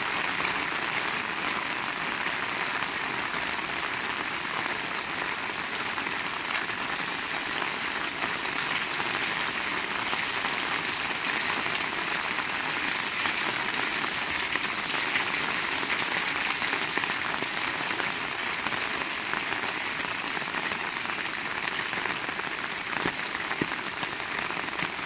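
Steady rain falls and patters on hard ground outdoors.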